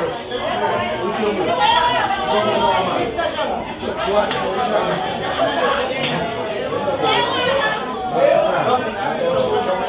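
Several people talk at once.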